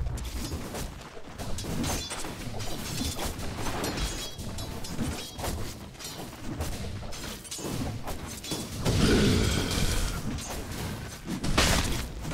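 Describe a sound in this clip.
Game characters clash with sharp hits.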